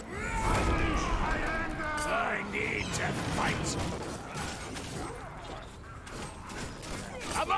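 Weapons strike monsters with sharp thuds.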